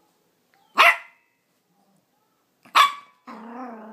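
A small dog scrambles about on a soft bedspread.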